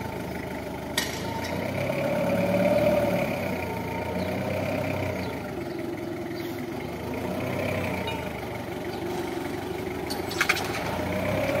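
Bottle crates on a forklift clatter and rattle briefly.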